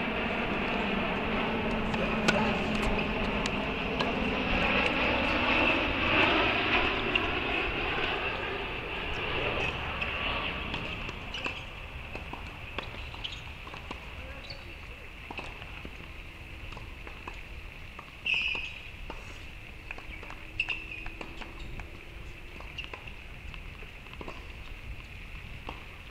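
A tennis ball is hit with a racket.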